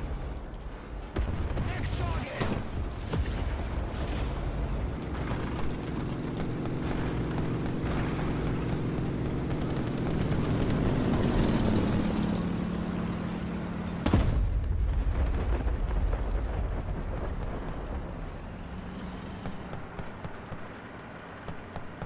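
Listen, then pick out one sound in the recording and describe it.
A tank engine rumbles and roars as it drives over grass.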